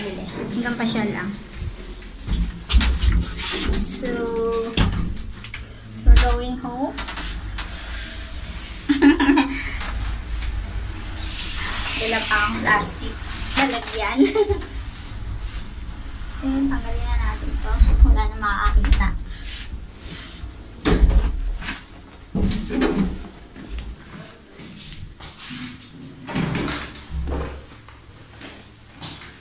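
A woman talks animatedly close to the microphone.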